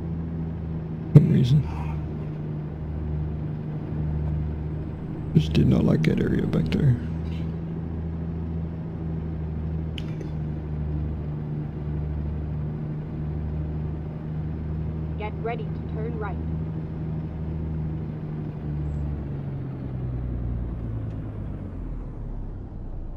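Heavy tyres hum along a paved road.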